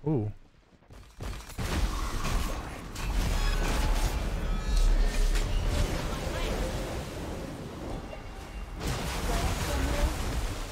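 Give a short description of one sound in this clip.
Video game combat effects clash, whoosh and crackle.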